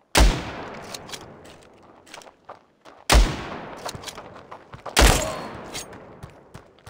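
A rifle bolt clicks and clacks as it is worked.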